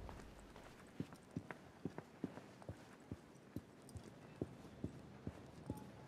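Footsteps tread softly and steadily on a hard floor.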